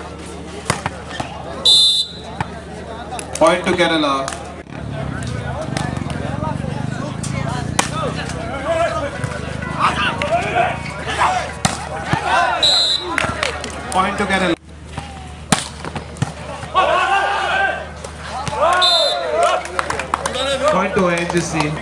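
A volleyball is struck hard during play.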